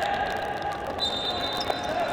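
A referee's whistle blows a long, shrill note.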